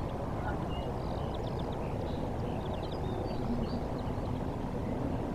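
Birds chirp and call in the distance.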